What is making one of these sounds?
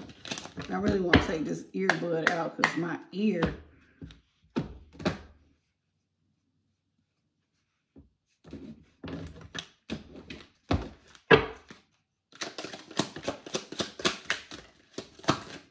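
Cards tap and rustle as they are handled.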